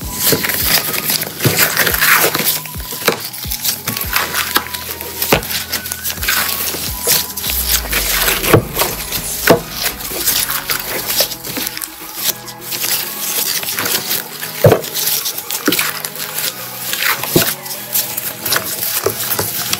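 Gloved hands squish and squeeze wet slime, with sticky squelches and pops.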